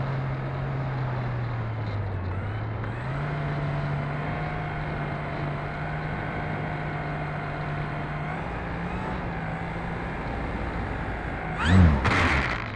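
A small model plane's engine hums steadily.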